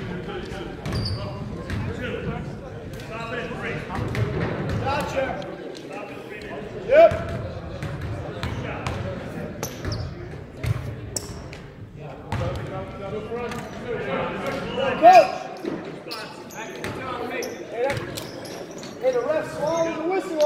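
Basketballs bounce on a hardwood court in a large echoing gym.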